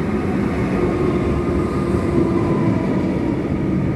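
Train wheels squeal on the rails as a train slows.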